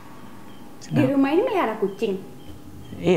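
A young woman speaks with surprise.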